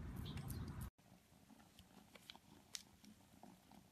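A cat licks a treat with quick wet clicks.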